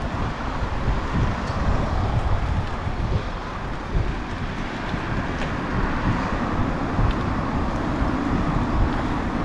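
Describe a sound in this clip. Wind rushes loudly past, as when riding a bicycle.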